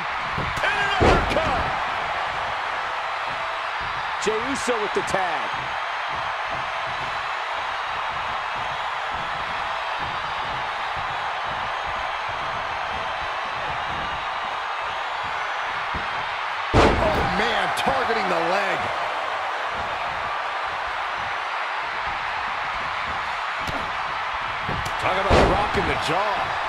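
Heavy thuds of bodies slam onto a wrestling ring mat.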